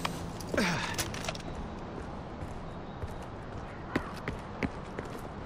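Footsteps tap on concrete.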